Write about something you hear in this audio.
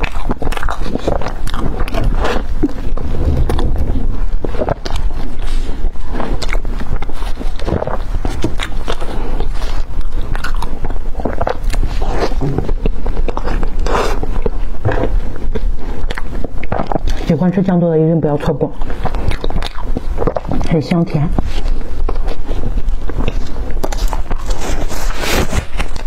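A young woman chews and munches crispy food close to a microphone.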